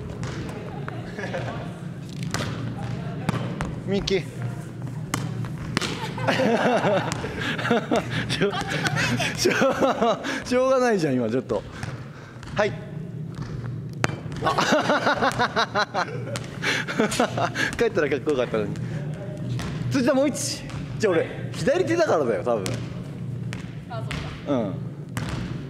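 A volleyball is struck by hands.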